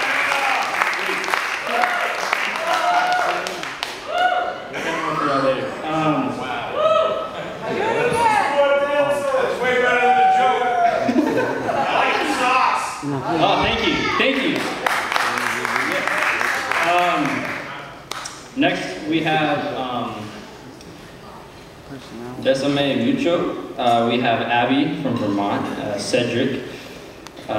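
A man speaks with animation into a microphone, amplified through loudspeakers in a large hall.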